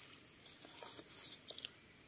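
Dry twigs and leaves rustle as a hand digs in the soil.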